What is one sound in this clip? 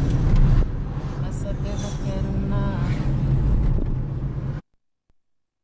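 A car engine hums and tyres rumble on the road from inside a moving car.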